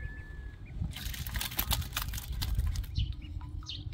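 Wet herbs slide and clatter out of a metal pot into a metal strainer.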